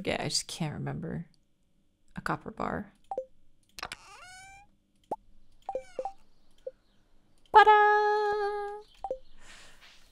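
Soft game clicks and chimes sound as menu items are picked.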